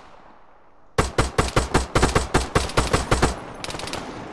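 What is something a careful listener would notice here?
A rifle fires a rapid burst of shots with echoing reports.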